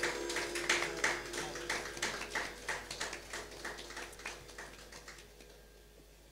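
An audience claps in applause in a hall, slowly fading away.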